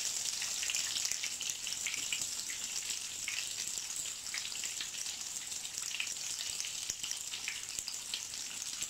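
A fish sizzles and crackles steadily as it fries in hot oil.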